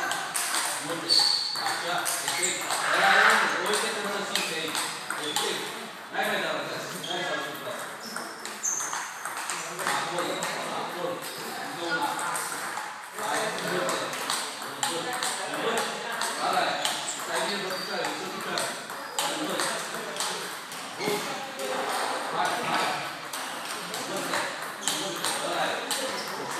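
A ping-pong ball clicks back and forth between paddles and table.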